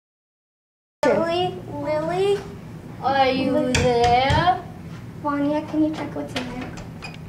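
A young girl talks excitedly.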